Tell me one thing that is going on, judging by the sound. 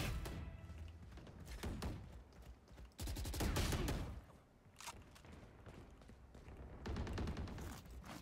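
Rapid gunshots crack from a video game.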